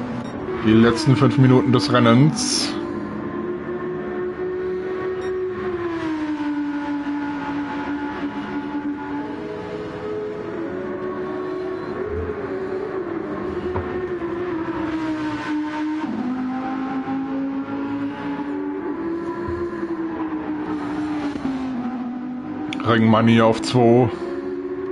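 A race car engine roars at high revs, rising and falling in pitch as it shifts gears.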